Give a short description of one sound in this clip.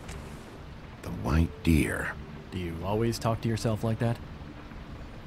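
A young man asks a question in a calm, teasing voice.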